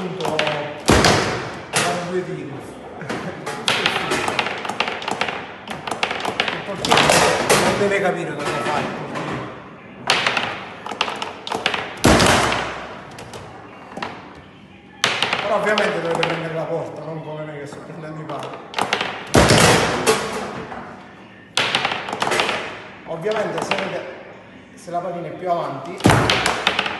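A plastic ball knocks sharply around a table football table.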